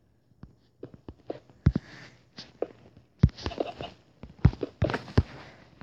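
Blocks crumble with soft crunching thuds.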